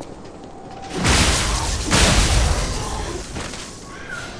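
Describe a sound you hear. A heavy blow lands with a loud crash and rumble.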